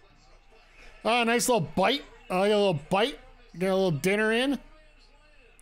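A man speaks loudly in long, drawn-out bursts, close to a microphone.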